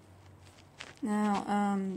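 A phone loudspeaker plays a short startup chime.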